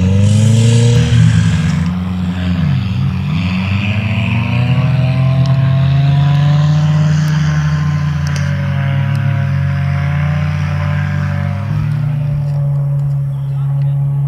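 An off-road buggy engine roars and revs up and down close by.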